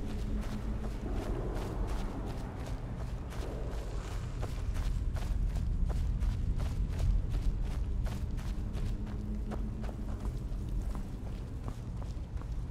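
Footsteps crunch over gravel and stone at a steady walking pace.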